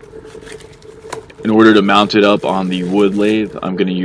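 A plastic bag crinkles in hands.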